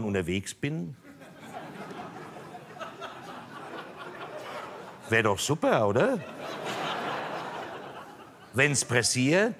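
An audience laughs in a large hall.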